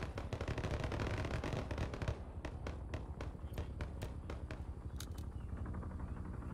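Footsteps thud quickly on dirt as a soldier runs past.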